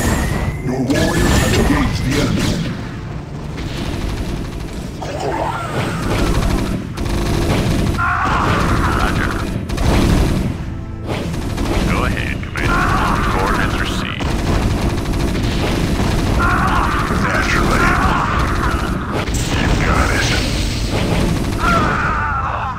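Guns fire and explosions boom in a battle.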